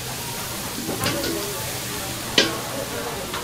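Metal tongs clink against a metal bowl.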